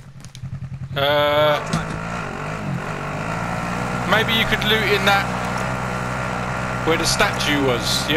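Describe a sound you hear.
A quad bike engine starts up and drones steadily.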